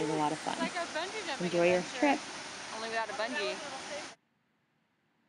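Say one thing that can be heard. Water rushes and splashes down a waterfall into a pool.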